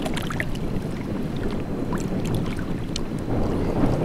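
Shallow water splashes around a man's hands.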